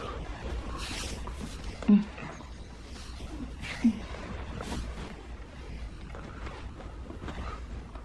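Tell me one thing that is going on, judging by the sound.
Lips smack softly as two people kiss.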